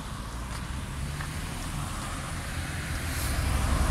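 A bus drives past close by with a low engine rumble.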